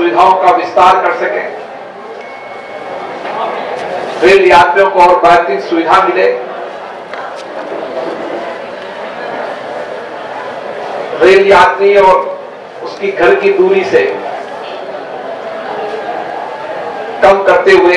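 A middle-aged man speaks into a microphone through a loudspeaker, in bursts with pauses.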